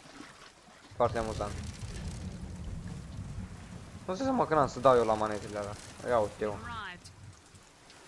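Rough sea waves churn and rumble around a small boat.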